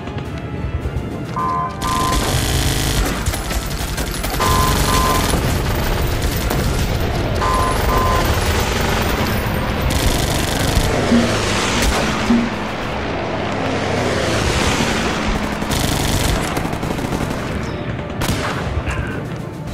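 Explosions boom and crackle in a game battle.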